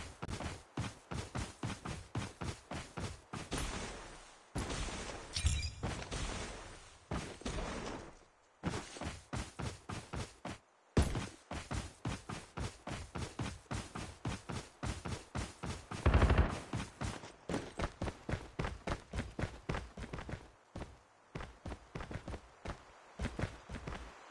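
Footsteps run quickly and steadily over grass.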